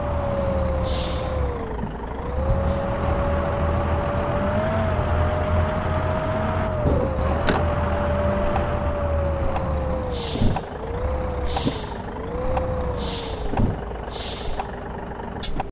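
A bus rolls along a road with a rushing of tyres.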